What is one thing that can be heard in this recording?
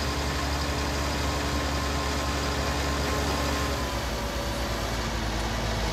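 A trailer rattles over rough ground.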